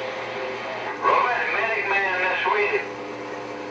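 A man's voice speaks through a radio loudspeaker.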